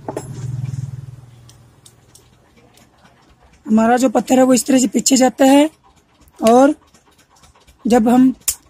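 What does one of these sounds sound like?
Small metal parts click and rattle in a hand.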